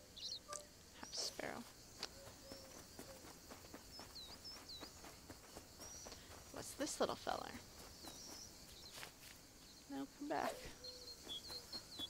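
A woman speaks casually into a close microphone.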